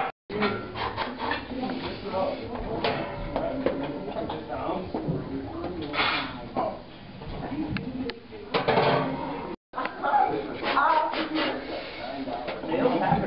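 A heavy weight bar clanks and rattles as it is lifted and set down.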